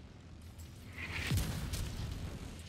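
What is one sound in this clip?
A gun fires a short burst.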